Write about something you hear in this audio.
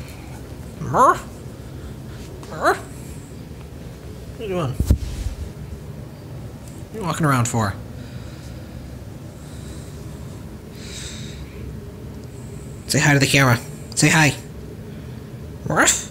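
A cat meows loudly close by, again and again.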